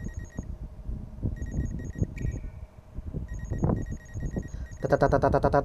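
An electronic scanner beeps in a quick repeating pattern.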